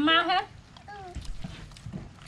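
A girl speaks briefly in a high voice close by.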